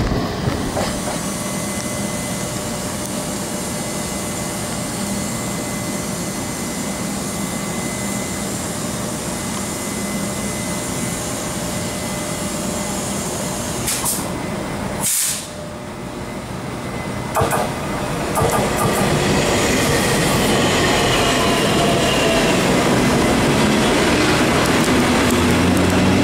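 A locomotive engine drones loudly as it draws near and passes.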